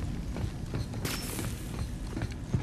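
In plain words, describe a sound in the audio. Electric sparks crackle and hiss.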